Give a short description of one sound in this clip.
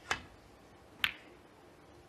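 Snooker balls knock together.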